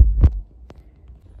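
A hand knocks against the microphone with a dull thump.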